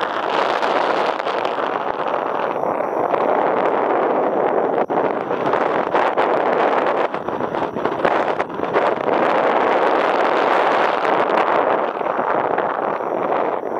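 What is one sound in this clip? Strong wind roars steadily past a microphone outdoors.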